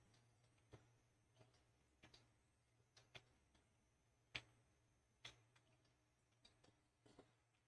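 Footsteps thud on hard ground at a walking pace.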